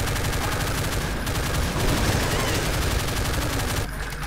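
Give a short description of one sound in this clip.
Fireballs whoosh and explode with a burst.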